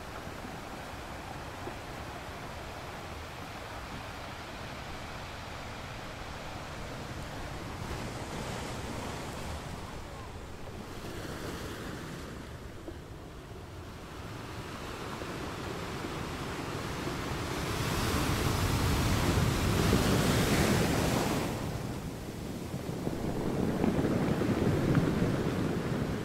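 Surf washes and hisses over the rocks.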